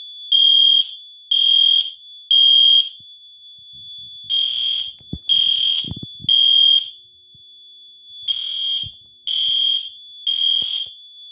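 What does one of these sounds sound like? A fire alarm sounds loud, shrill beeps in a steady repeating pattern.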